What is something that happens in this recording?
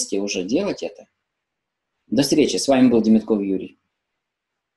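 An older man speaks with animation, close by.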